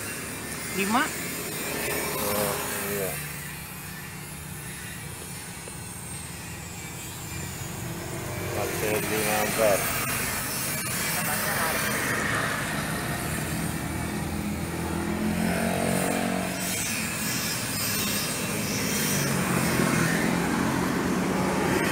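A small electric fan hums steadily.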